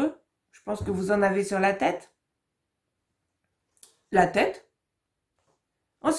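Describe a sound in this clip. A woman speaks calmly and clearly into a close microphone, with short pauses.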